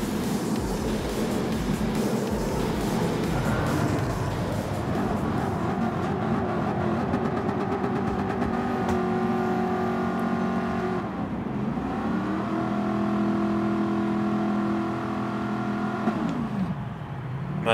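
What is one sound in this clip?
Several racing car engines rumble and rev while waiting to start.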